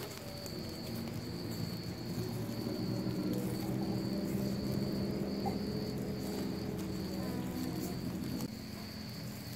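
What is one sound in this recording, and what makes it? A woven bamboo hand fan whooshes air over glowing charcoal.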